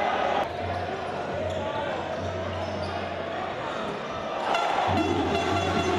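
A crowd in a large echoing arena murmurs and cheers.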